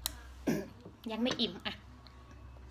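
A little girl speaks in a small voice.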